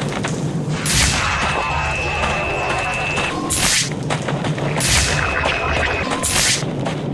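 A scanning device beeps with a steady high tone.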